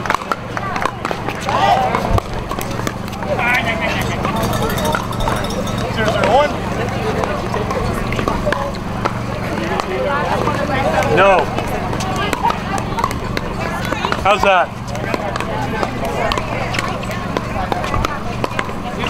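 Paddles pop sharply against a plastic ball.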